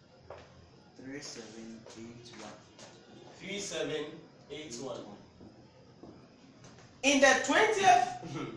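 A man speaks in a lecturing manner, nearby in a room with some echo.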